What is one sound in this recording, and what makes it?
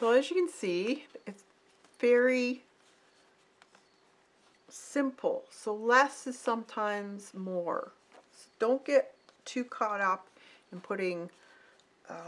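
Stiff paper rustles and slides as it is handled.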